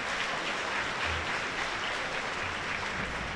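An orchestra plays in a large hall.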